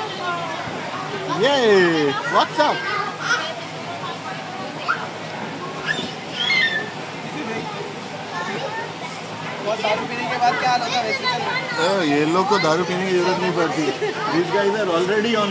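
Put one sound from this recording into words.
Young children shout and squeal close by in an echoing hall.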